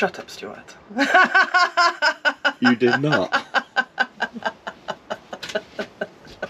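A woman laughs heartily in bursts.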